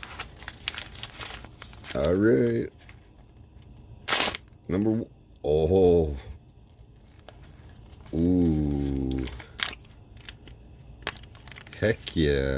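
Plastic wrapping crinkles and rustles as hands tear it open.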